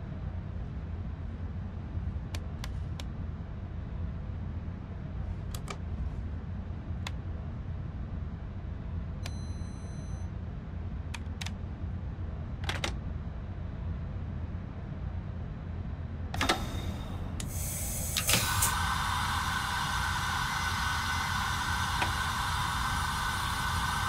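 A diesel engine idles with a low, steady rumble.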